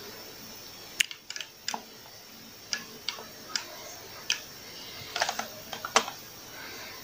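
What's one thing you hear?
Arcade buttons click sharply under a finger, several times.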